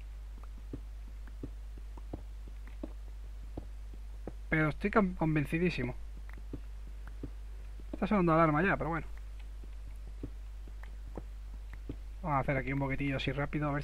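A pickaxe taps rapidly and repeatedly on stone.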